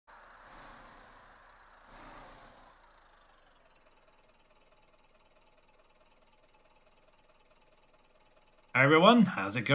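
A bus engine idles with a low hum.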